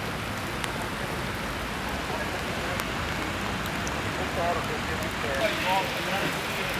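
Light rain patters steadily outdoors.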